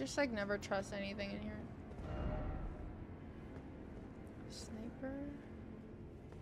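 A young woman talks close to a microphone.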